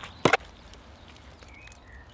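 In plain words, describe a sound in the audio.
A man slaps handfuls of mud onto a wall.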